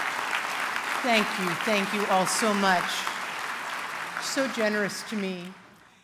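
A middle-aged woman speaks calmly through a microphone in a large hall.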